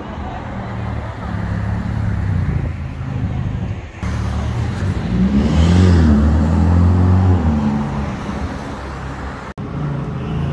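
A turbocharged V8 Ferrari accelerates past.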